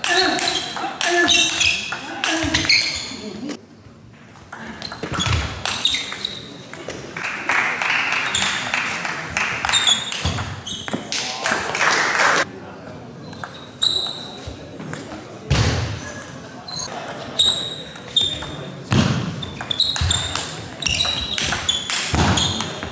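Sneakers squeak on a hall floor.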